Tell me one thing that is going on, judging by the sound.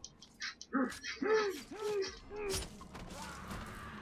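A blade stabs into flesh with a wet thud.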